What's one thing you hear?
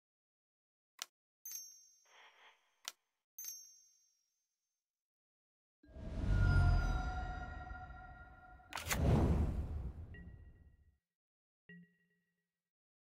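Short electronic chimes and whooshes ring out from a card game.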